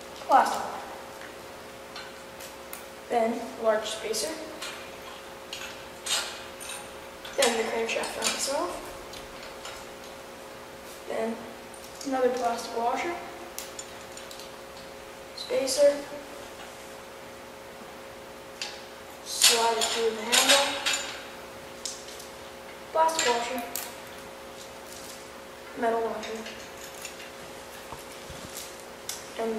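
A boy talks calmly close by, in short bursts with pauses.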